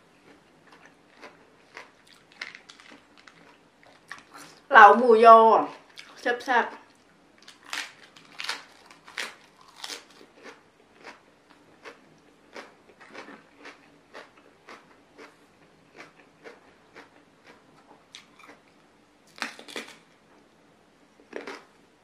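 Crisp lettuce crunches loudly as a young woman chews.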